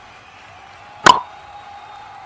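A cricket bat cracks against a ball.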